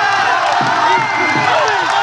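A crowd claps.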